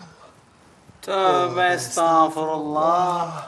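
A man sings loudly in a sustained, wavering voice.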